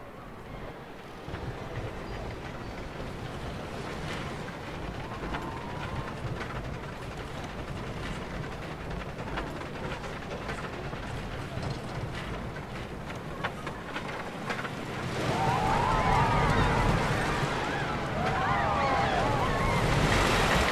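A roller coaster car rumbles and rattles along a wooden track, growing louder toward the end.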